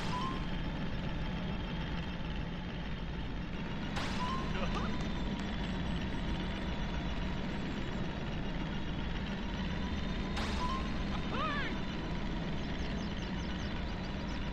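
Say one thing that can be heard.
An engine roars steadily.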